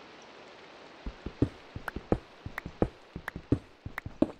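A pickaxe chips at stone with quick taps.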